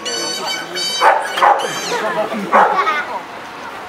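A dog barks sharply outdoors.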